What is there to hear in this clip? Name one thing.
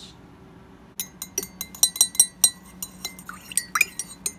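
A metal spoon clinks rapidly against a ceramic mug.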